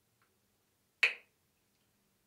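A plastic bottle cap snaps open.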